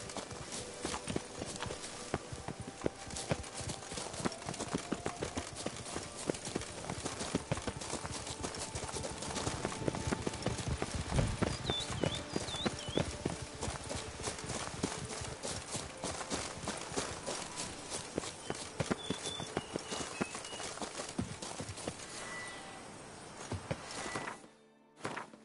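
Footsteps crunch quickly over a dirt path.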